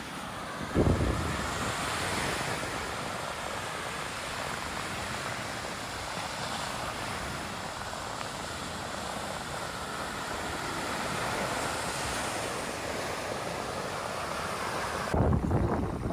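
Waves break and wash onto a sandy shore.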